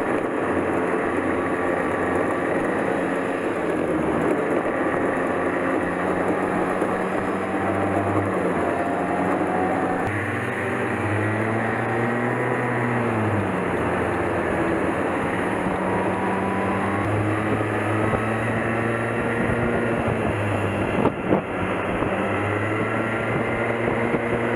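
A small kart engine buzzes up close, its pitch rising and falling as it speeds up and slows down.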